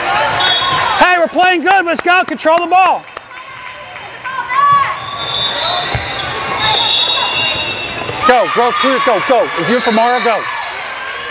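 Young women cheer and shout loudly.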